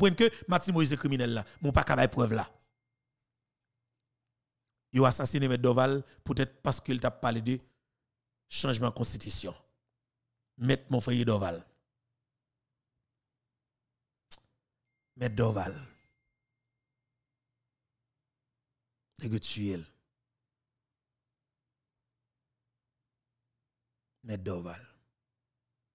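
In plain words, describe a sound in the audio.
A man speaks with animation into a close microphone, in short bursts separated by pauses.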